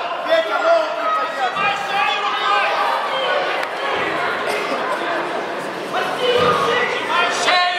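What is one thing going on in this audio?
Men shout encouragement loudly nearby.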